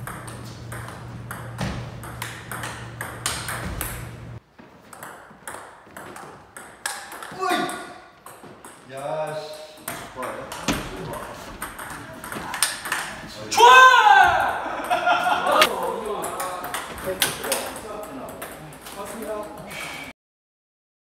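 A ping pong ball clicks rapidly back and forth off paddles and a table.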